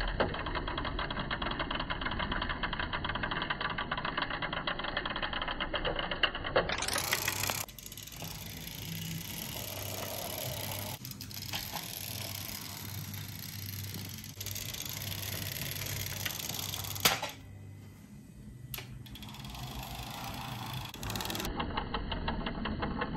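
Small toy car wheels roll softly along a hard surface.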